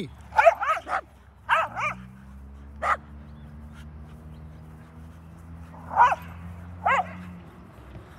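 Dogs bark sharply in short bursts outdoors.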